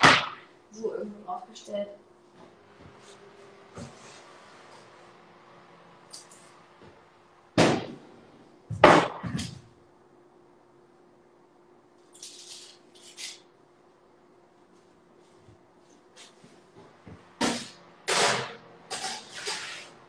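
Dishes clatter and knock on a counter.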